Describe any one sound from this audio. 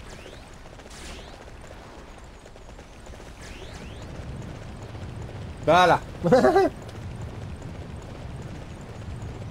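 A horse's hooves thud at a gallop.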